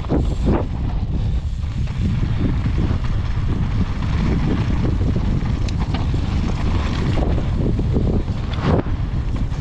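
Wind rumbles loudly and roughly over the microphone.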